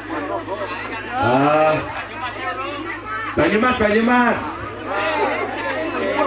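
A man speaks loudly and with animation through a loudspeaker, outdoors.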